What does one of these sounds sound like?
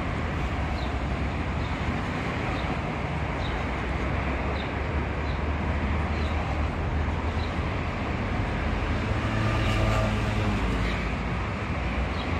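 A pigeon's feet tap softly on paving stones as it walks.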